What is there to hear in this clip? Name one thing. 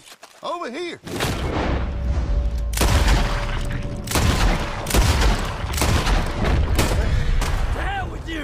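Gunshots crack loudly in quick succession.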